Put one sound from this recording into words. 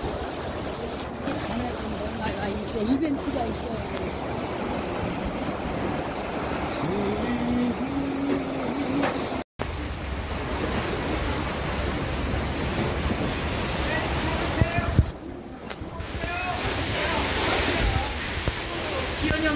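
Waves crash and surge against rocks close by.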